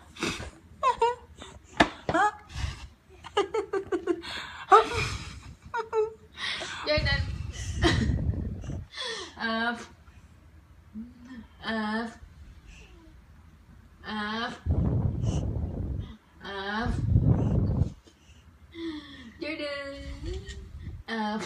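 A baby giggles and laughs loudly, close by.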